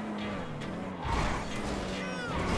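A car crashes into a metal guardrail with a loud bang and scraping.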